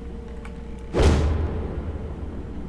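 A heavy blow lands with a deep thud.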